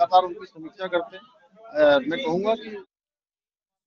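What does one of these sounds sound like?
A middle-aged man speaks calmly into microphones up close.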